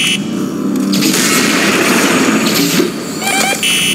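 A futuristic gun fires a sharp, hissing energy blast.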